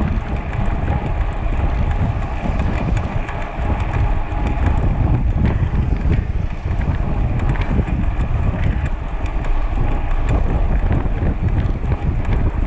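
Wind roars steadily past the microphone.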